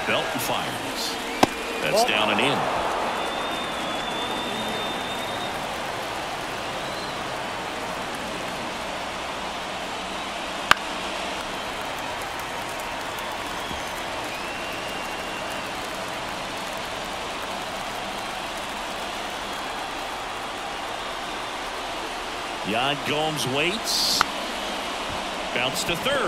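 A large crowd murmurs steadily in a ballpark.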